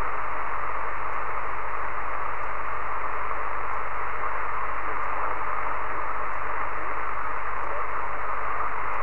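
A radio receiver on single sideband hisses with static.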